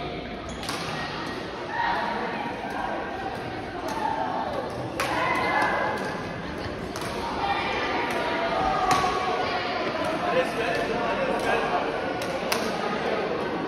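Shuttlecocks are struck with sharp pops of rackets in a large echoing hall.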